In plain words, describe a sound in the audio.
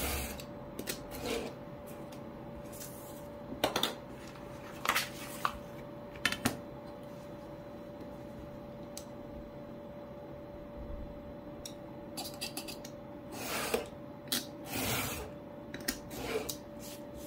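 A blade scrapes along a metal ruler, cutting paper.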